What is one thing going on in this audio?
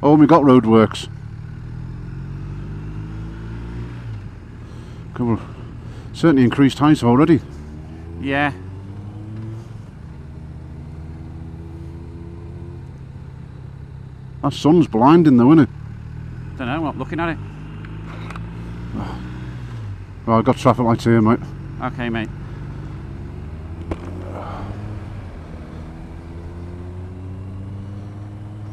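A motorcycle engine hums steadily at an even pace.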